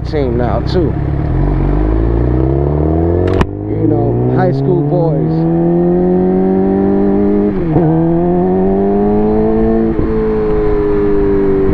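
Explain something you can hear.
A motorcycle engine revs up and climbs in pitch, dropping briefly with each gear change.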